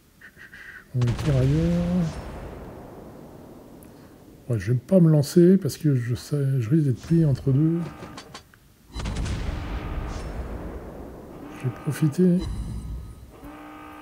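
Heavy guns fire with deep booms that rumble away.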